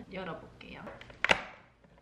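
Fingers tap on a cardboard box.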